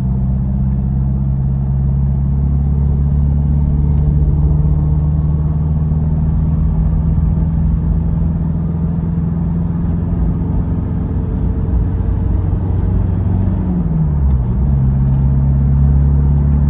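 A car engine hums steadily from inside the cabin, dipping in pitch as the gears change.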